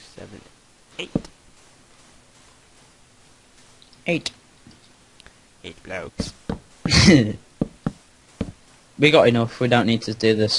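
Wooden blocks are set down with short, soft knocks.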